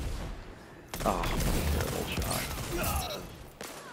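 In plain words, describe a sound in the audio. Rapid gunfire blasts loudly at close range.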